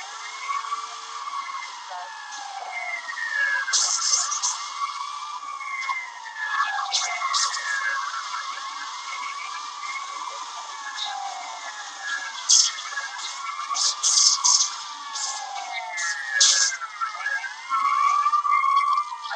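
A police siren wails continuously from a small phone speaker.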